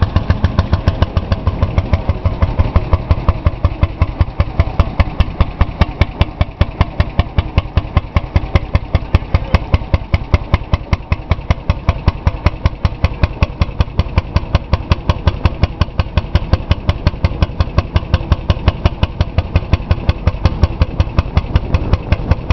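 An old single-cylinder tractor engine thumps steadily up close.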